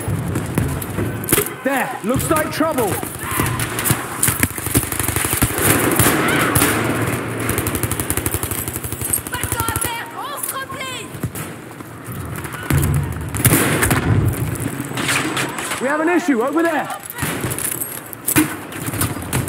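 Guns fire in rapid, loud bursts close by.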